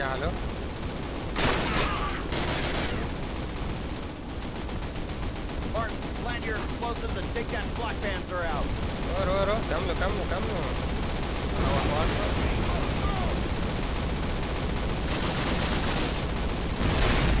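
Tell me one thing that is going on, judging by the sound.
A low rumble of battle and explosions runs throughout.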